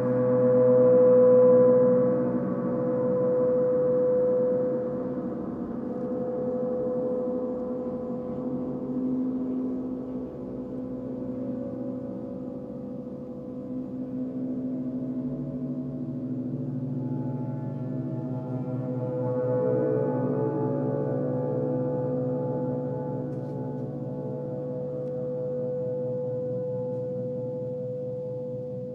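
Large gongs hum and shimmer with deep, long ringing tones that swell and fade.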